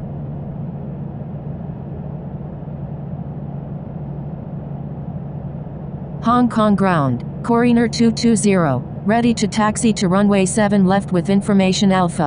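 A jet engine hums steadily at idle.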